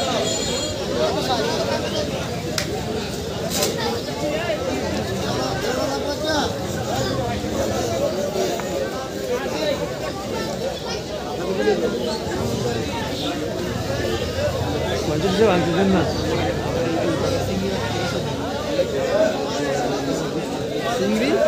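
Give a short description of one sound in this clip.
A busy outdoor market crowd chatters all around.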